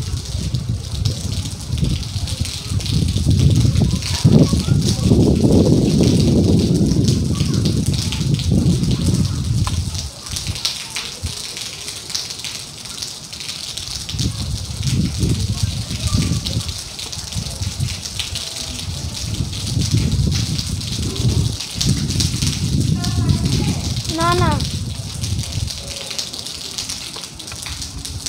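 Rain patters steadily on a metal roof.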